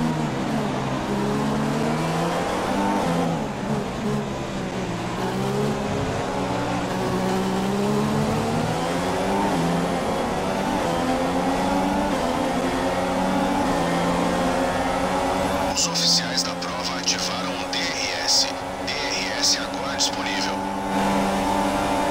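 A racing car engine whines loudly, its pitch rising and falling through the gears.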